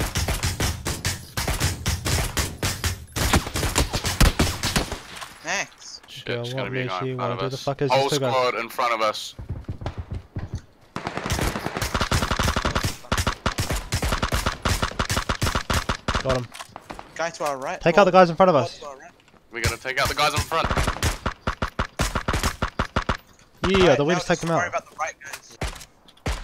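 A rifle fires rapid, loud shots.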